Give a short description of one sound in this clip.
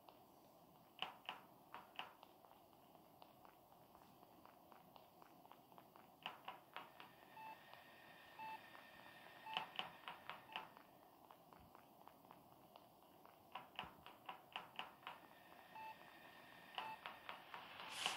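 A video game character's footsteps patter.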